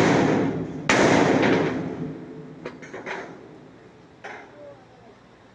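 A hammer strikes a large steel pipe with a ringing clang.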